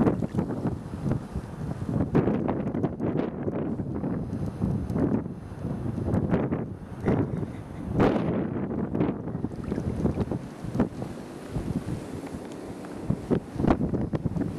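Small waves lap and splash against a boat.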